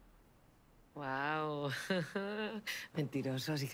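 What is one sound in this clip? A woman laughs loudly and playfully close by.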